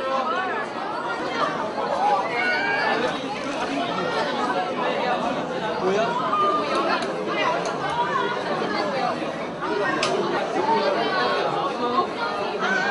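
A large crowd chatters and shouts excitedly all around.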